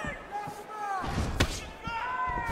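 A kick thuds against a body.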